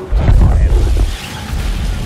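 Blaster shots zap rapidly.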